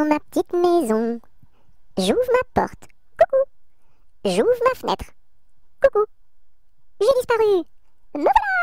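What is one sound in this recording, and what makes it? A cartoon witch speaks in a croaky, exaggerated voice.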